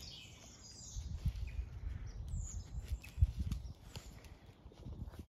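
A dog rustles through leafy undergrowth.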